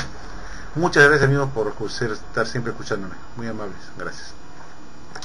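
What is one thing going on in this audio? An elderly man speaks calmly into a microphone, heard as if over an online call.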